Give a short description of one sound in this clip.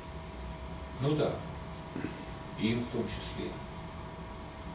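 An elderly man speaks in short phrases from across the room.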